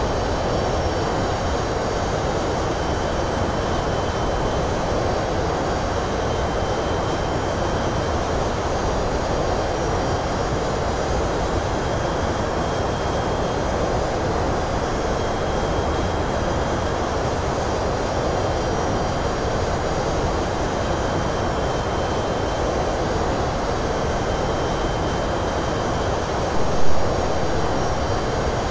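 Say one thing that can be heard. A steady roar of jet engines and rushing air fills an aircraft cockpit.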